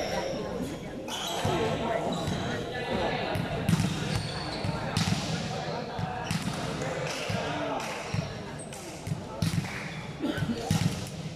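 Volleyballs thump as players hit them.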